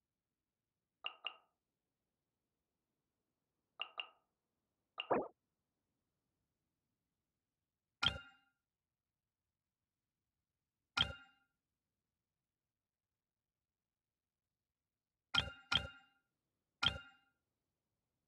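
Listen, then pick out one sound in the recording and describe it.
Short menu clicks and chimes sound as options are selected.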